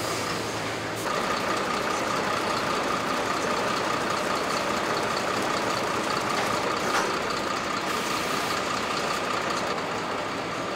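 Rollers spin a truck tyre with a steady high whine.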